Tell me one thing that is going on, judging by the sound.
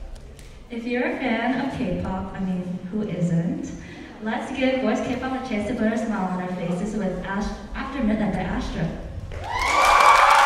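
A young woman speaks with animation into a microphone, amplified over loudspeakers in a large hall.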